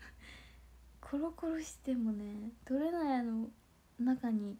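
A young woman giggles close to a microphone.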